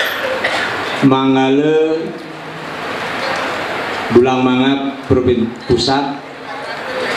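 A middle-aged man speaks calmly into a microphone, heard through a loudspeaker.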